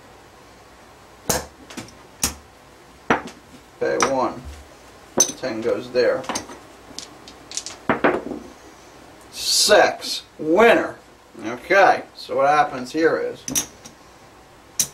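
Casino chips click against each other as they are placed on a felt table.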